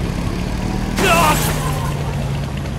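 A motorbike crashes with a loud bang.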